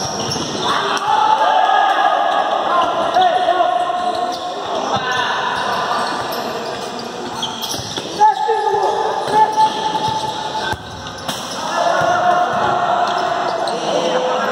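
Players' shoes squeak sharply on an indoor court.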